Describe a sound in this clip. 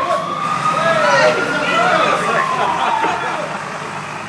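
A siren wails nearby, rising and falling in pitch.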